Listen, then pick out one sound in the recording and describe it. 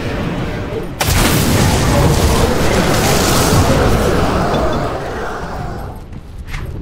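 Magic blasts crackle and roar in a loud burst of fighting.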